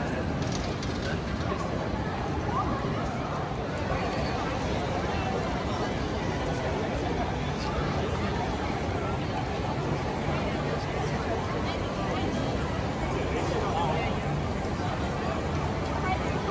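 A crowd of people chatters and walks by outdoors.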